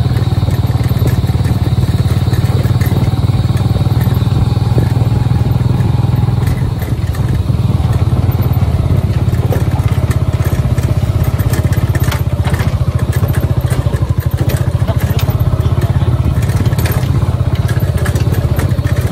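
A small motor rickshaw engine putters steadily close by.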